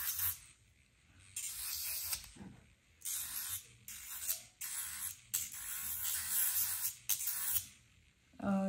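A nail file scrapes against a fingernail in short bursts.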